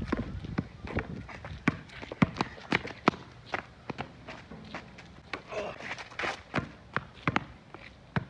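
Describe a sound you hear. A basketball bounces sharply on an outdoor court.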